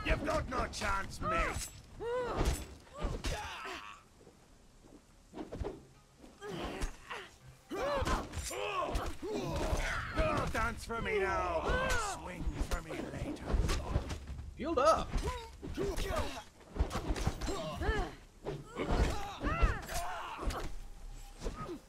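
Metal blades clash and strike again and again.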